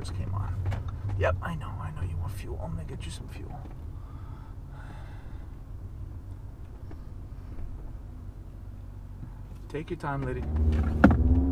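A man talks casually and close by.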